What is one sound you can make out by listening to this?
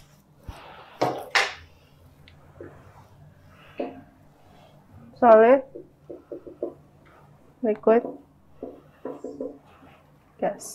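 A woman speaks calmly and clearly, as if teaching, close by.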